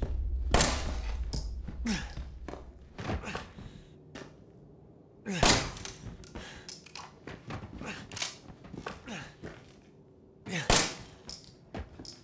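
A pistol fires loud shots that ring out in an echoing room.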